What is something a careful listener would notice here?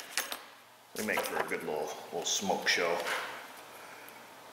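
Metal parts clink and scrape as a tool is fitted onto a joint.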